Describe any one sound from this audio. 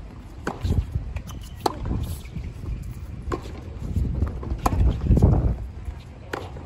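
Tennis balls pop off rackets in a steady back-and-forth rally.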